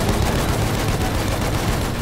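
A machine gun rattles in rapid bursts.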